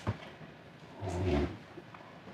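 A middle-aged man says a brief word, close by.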